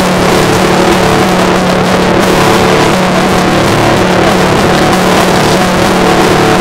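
An acoustic guitar is strummed steadily, close by.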